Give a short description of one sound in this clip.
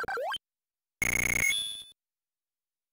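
A short electronic chime rings out.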